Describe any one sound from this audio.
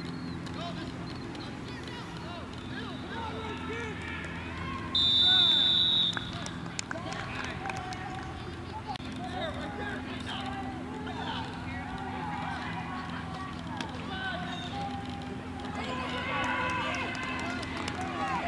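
Young boys shout and call out across an open field.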